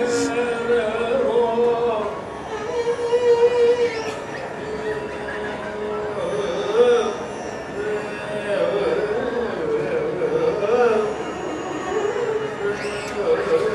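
A man keeps rhythm by clapping his hands.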